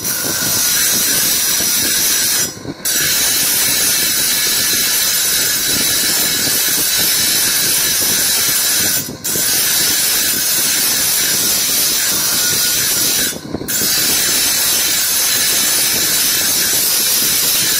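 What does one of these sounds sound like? Metal rubs and hisses against a spinning polishing wheel.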